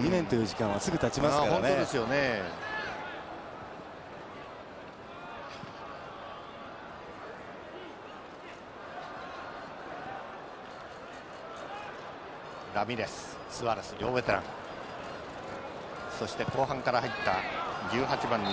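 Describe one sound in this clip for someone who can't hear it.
A large stadium crowd murmurs and roars in the distance.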